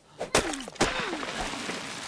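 A hatchet chops into a tree trunk with sharp thuds.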